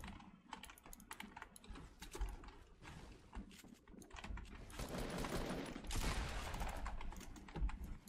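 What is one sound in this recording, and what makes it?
Blocks clatter as walls are built quickly.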